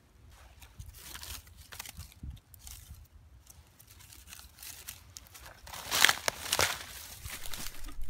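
Dry bark crackles as it is peeled.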